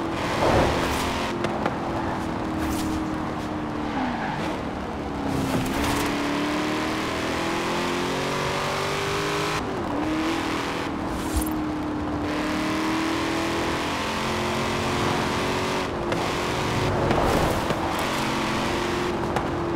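A powerful car engine roars steadily, its pitch dipping briefly at each gear change.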